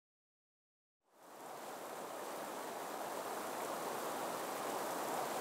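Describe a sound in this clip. Fast water rushes and churns loudly.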